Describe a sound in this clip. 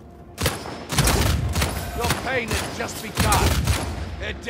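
A sniper rifle fires with a loud boom.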